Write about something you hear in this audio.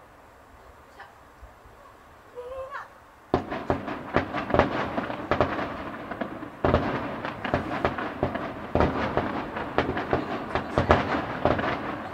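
Fireworks burst with loud booming bangs, echoing outdoors.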